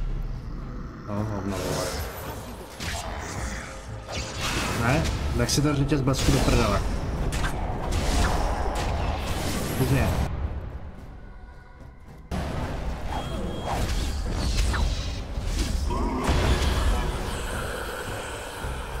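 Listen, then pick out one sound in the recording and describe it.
Combat clashes and magic blasts ring out in a game.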